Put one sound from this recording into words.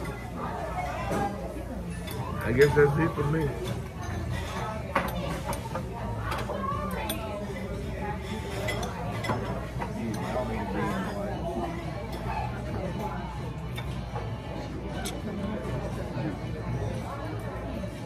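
Voices chatter in the background of a busy room.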